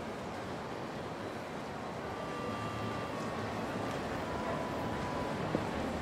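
A city street hums with steady background noise.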